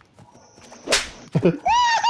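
A cartoonish slap smacks loudly.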